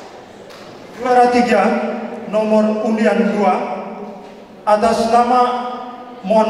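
A man chants in a drawn-out voice through a microphone and loudspeaker in an echoing hall.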